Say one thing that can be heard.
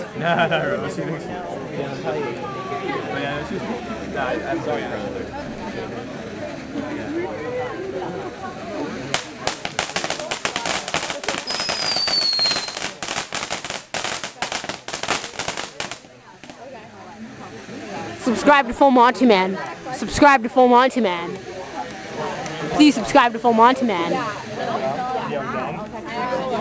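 A firework fountain hisses and sprays sparks.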